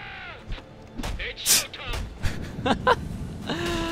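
Punches and kicks thud in a fight.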